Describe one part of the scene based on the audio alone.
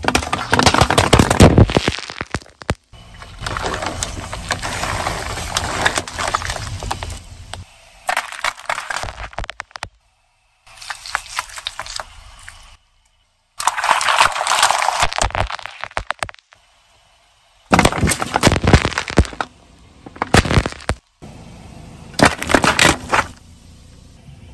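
A car tyre rolls over cans and bottles, crushing them with loud crunches and bursts.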